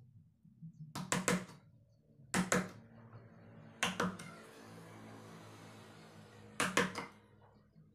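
A chisel knocks sharply against wood.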